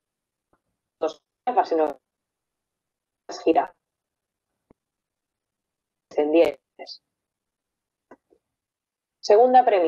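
A young woman speaks calmly through a microphone in an online call, in short phrases with pauses.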